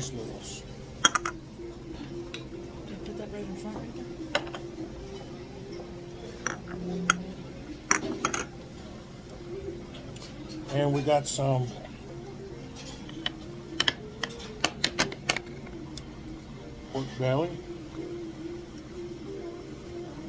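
Chopsticks click against a metal pot.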